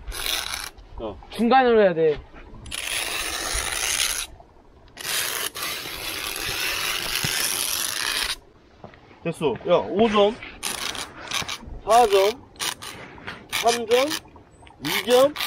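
A stick scrapes and scratches across ice.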